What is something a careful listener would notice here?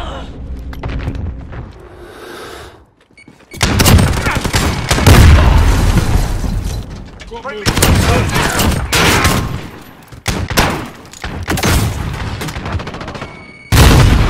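Rapid gunfire bursts and cracks.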